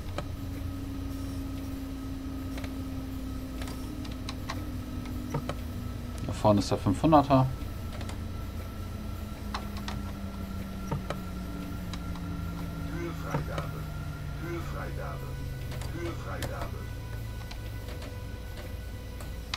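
A train's electric motor hums and slowly falls in pitch as the train slows down.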